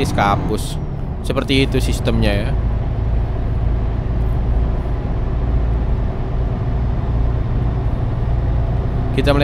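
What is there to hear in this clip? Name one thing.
A truck engine drones low and steady as the truck cruises along a road.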